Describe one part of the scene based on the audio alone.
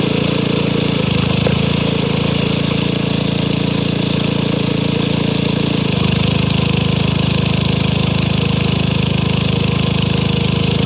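A log splitter's engine labours harder as the wedge pushes through a log.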